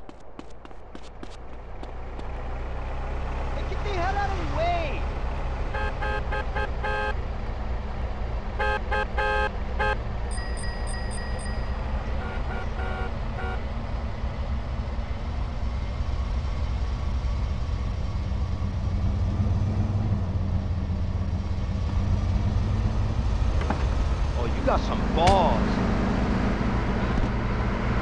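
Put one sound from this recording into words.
Car engines rumble steadily as traffic rolls by.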